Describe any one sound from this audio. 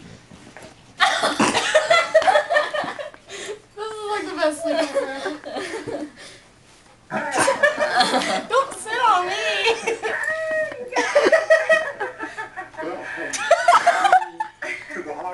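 Several young people laugh and shout excitedly nearby.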